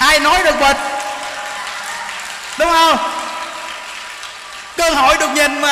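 A crowd claps hands.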